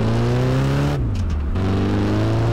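A car engine drops in pitch briefly as the gear changes.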